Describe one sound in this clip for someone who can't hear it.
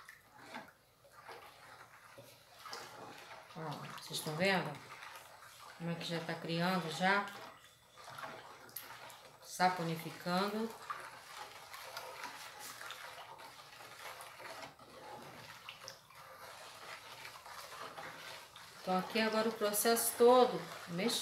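A spoon stirs thick liquid in a plastic bowl.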